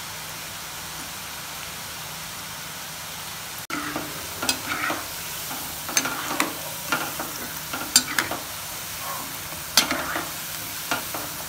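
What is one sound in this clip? Hot oil sizzles and bubbles steadily.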